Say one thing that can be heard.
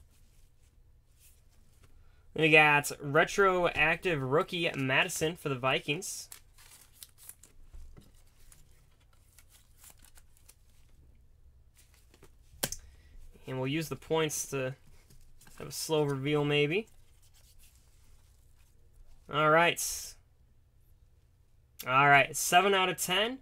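A plastic card sleeve crinkles and taps softly as cards are handled.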